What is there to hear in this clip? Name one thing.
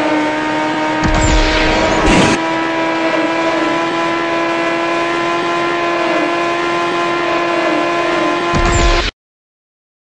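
A car whooshes past another car.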